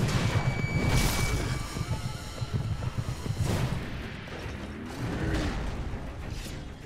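Blows strike with sharp thuds.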